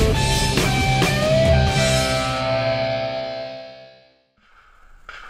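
Music plays.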